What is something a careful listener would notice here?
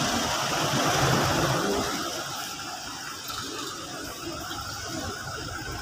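A pickup truck engine rumbles as it pulls up close.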